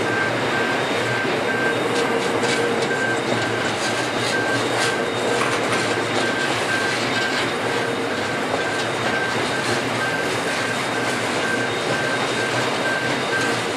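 A train of coal hopper wagons rolls past on steel rails, the wheels clattering.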